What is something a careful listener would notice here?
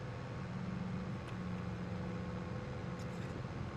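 Leafy branches brush against a tractor cab.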